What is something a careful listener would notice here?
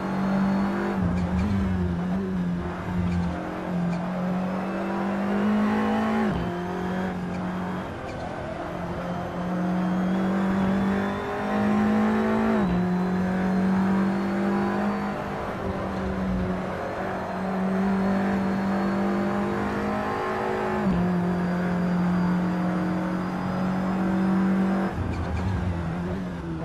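A race car engine roars close by, climbing in pitch and dropping sharply at each gear change.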